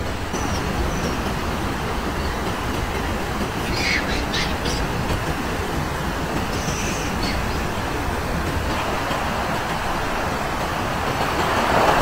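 A stream rushes steadily over rocks.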